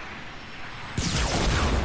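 A gun fires in loud bursts.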